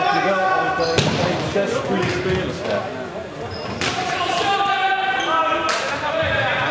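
A ball is kicked with loud thuds that echo.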